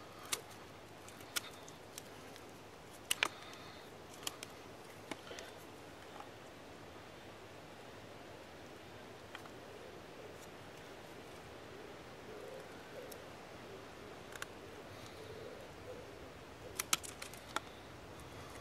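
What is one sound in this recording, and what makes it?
Sharp clicks and snaps of wood on wood come now and then.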